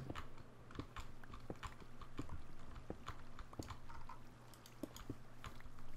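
A pickaxe chips at stone with quick taps.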